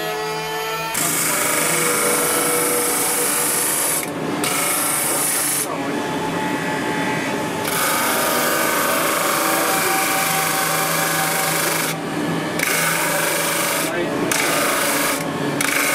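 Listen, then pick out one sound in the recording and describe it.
A spinning sanding disc grinds against a block of wood.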